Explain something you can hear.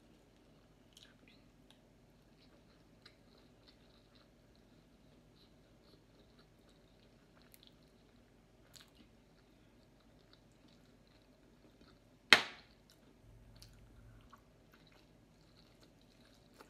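A woman eats with her hands, chewing and smacking softly close by.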